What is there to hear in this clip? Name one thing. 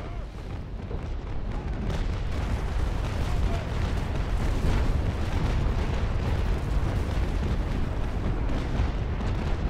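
Waves wash against a wooden hull.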